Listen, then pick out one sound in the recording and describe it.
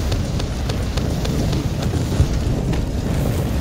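A fiery explosion roars and crackles.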